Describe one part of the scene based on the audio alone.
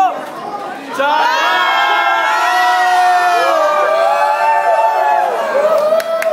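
A crowd of young people screams and shrieks with excitement.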